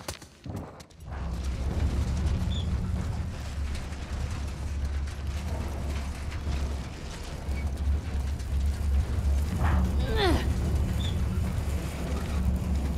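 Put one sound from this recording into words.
A heavy metal dumpster scrapes and rumbles as it is pushed across a concrete floor.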